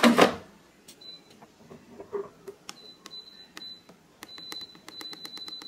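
An air fryer touch panel beeps.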